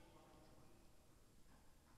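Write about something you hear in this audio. Footsteps scuff on a hard court nearby.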